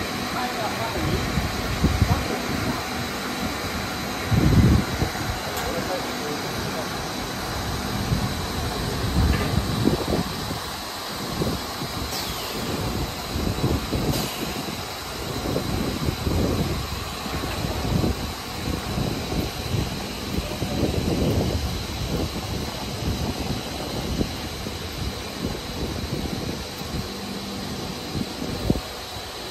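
Factory machinery hums steadily in a large echoing hall.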